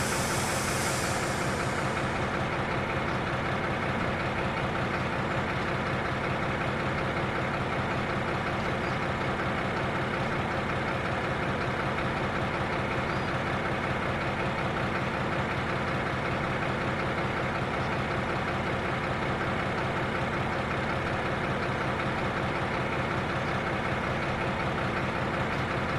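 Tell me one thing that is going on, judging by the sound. A diesel locomotive engine hums steadily at low speed.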